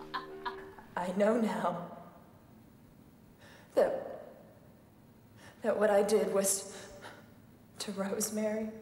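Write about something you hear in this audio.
A middle-aged woman speaks quietly and slowly, close by.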